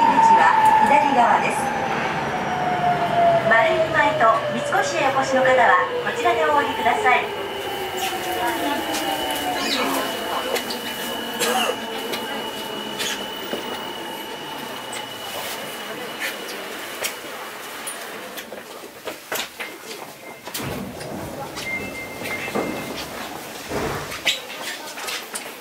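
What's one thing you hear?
A subway train rumbles along the track, growing quieter.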